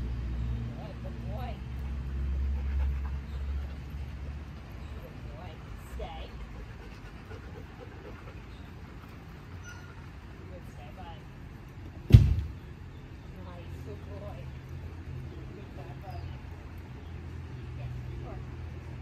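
A woman speaks softly and briefly to dogs nearby.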